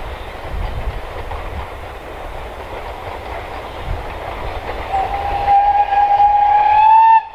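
A steam train chugs in the distance.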